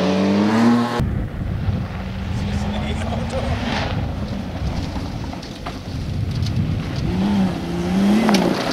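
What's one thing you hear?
Gravel crunches and sprays under tyres.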